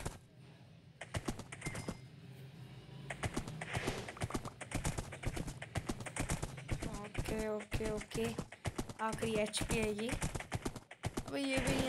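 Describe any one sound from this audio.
Rapid hits sound as a game character swings a weapon.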